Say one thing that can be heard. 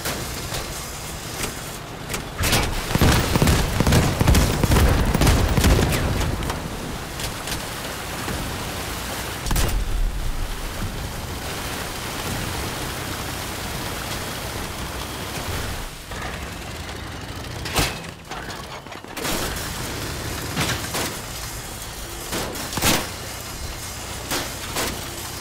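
A heavy tracked vehicle's engine rumbles as it drives.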